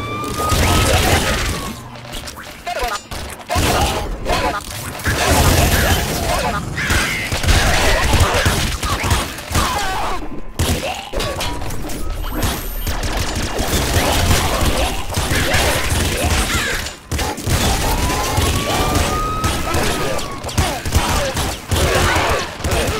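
Rapid gunfire crackles and pops from a retro video game.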